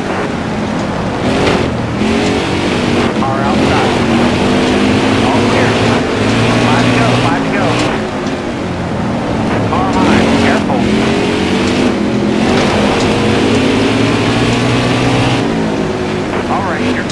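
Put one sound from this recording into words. Other race cars' engines roar close by.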